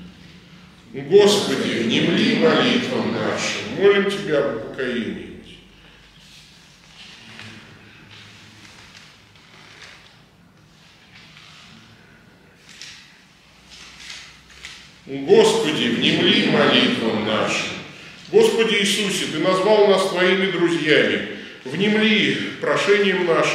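A man chants loudly through a microphone in an echoing room.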